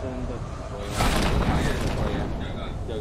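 A parachute snaps open with a loud whoosh.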